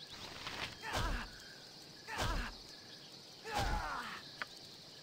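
Weapons strike in a short fight, in sharp loud bursts.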